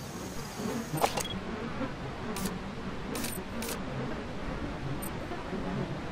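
Binoculars click softly as they zoom in and out.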